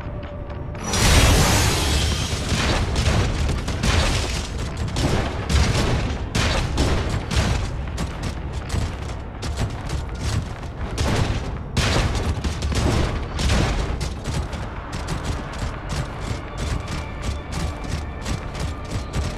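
Heavy metal feet clank rapidly on hard ground.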